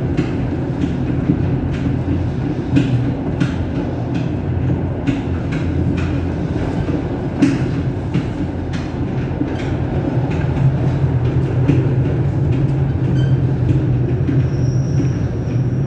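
Train wheels clack over rail joints at an uneven pace.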